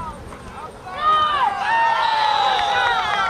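Spectators cheer loudly as the play runs.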